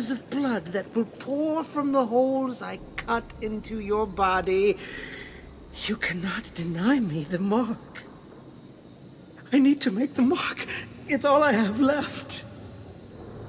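A man speaks in a low, menacing voice, close up.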